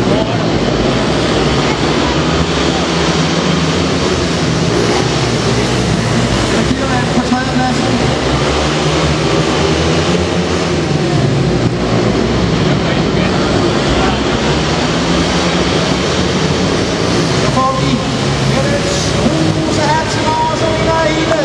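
Motorcycle engines roar loudly as bikes race around an echoing indoor track.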